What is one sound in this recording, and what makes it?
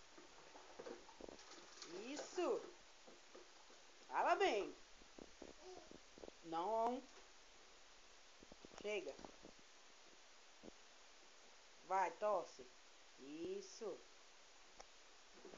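Water splashes lightly as a baby plays in a bath.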